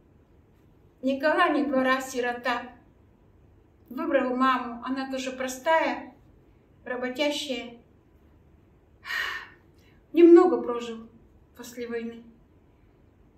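An elderly woman speaks calmly and warmly, close by, in short bursts with pauses.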